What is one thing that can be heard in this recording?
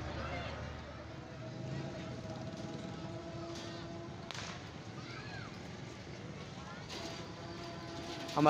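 A crowd of children and men murmurs and chatters.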